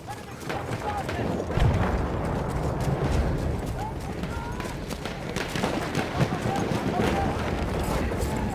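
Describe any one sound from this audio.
Footsteps run quickly over rough ground.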